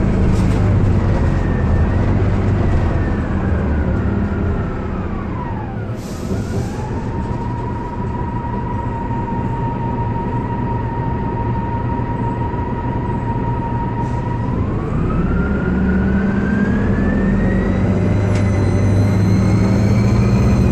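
A bus transmission whines, falling and then rising in pitch as it shifts.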